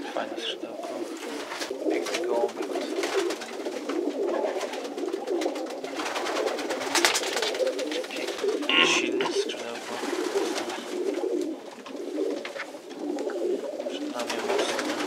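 Feathers rustle softly as a pigeon's wing is spread out by hand.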